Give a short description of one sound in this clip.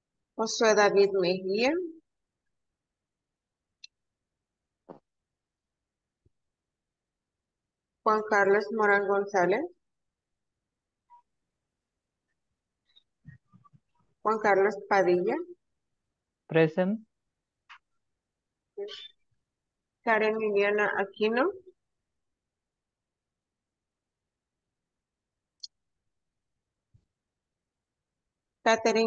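A woman speaks with pauses through an online call.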